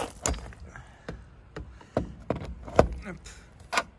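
A plastic charging plug clunks as it is pushed back into a socket.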